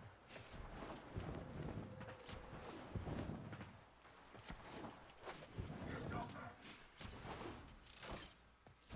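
Gunfire and impact effects crackle and thud in quick bursts.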